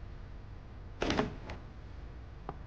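A door opens with a thud.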